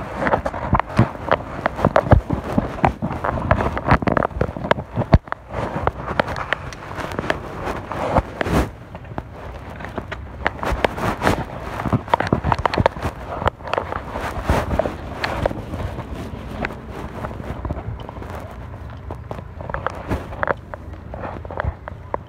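Fingers rub and knock against a phone's microphone close up.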